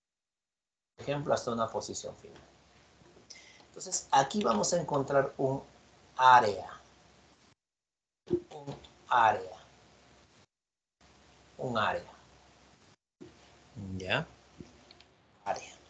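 A man lectures calmly through a microphone over an online call.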